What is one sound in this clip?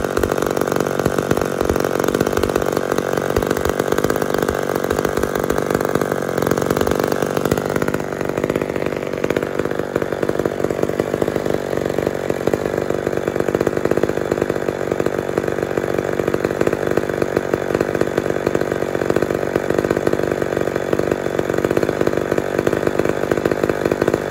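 A chainsaw engine idles loudly and steadily, close by.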